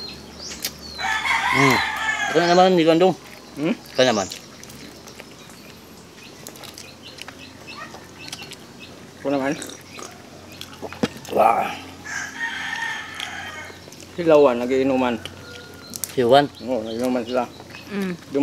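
An older man talks casually close by.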